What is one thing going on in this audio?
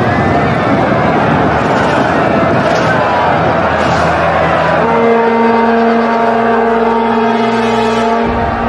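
A large army tramps across open ground with a dense rumble of footsteps.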